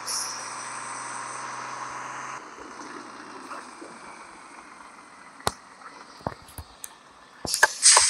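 A bus engine in a driving game runs as the bus slows down.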